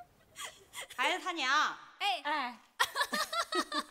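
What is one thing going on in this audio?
A woman speaks warmly and with animation.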